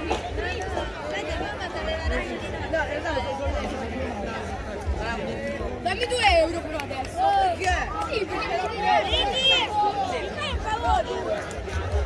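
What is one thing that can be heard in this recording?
Children shout and call out while they play outdoors.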